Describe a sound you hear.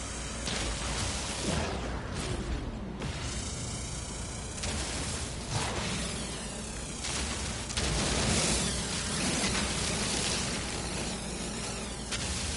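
A sci-fi mining laser beam hums and crackles.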